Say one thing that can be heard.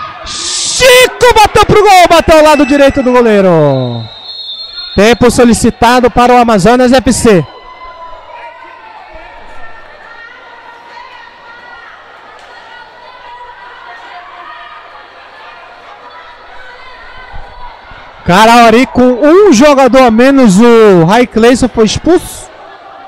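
A crowd murmurs and shouts in an echoing sports hall.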